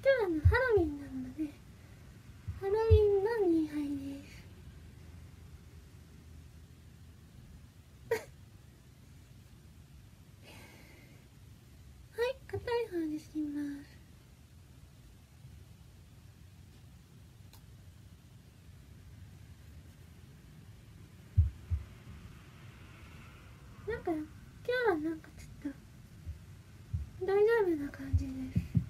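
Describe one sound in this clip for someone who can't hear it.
A young woman speaks softly close by, with a high, sing-song voice.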